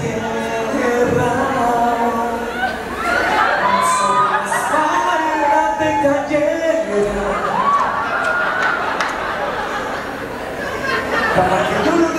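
A young man talks with animation through a microphone and loudspeakers in an echoing hall.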